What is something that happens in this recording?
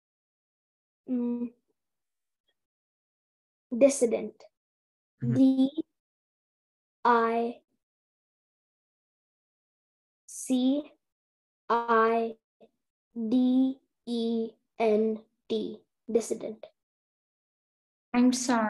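A young boy speaks with animation over an online call, in short bursts.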